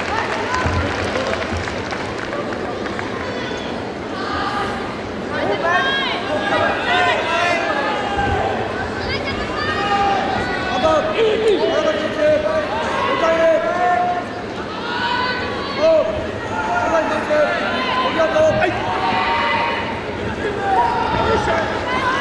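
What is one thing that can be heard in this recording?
A crowd in a large echoing hall shouts and cheers.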